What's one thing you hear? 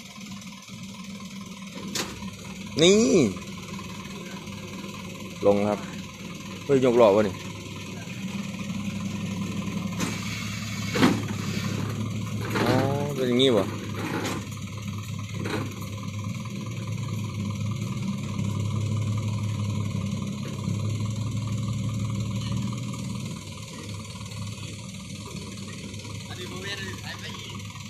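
A truck engine idles steadily.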